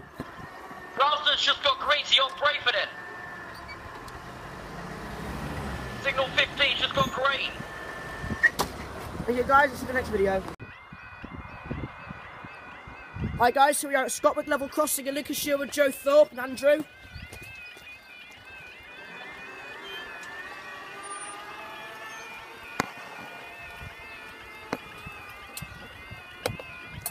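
A level crossing alarm wails in a loud, repeating warble.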